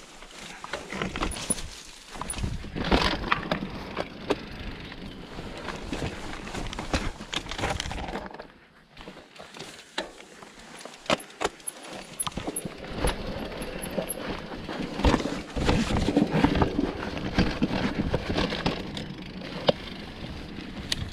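A bicycle's chain and frame rattle over bumps.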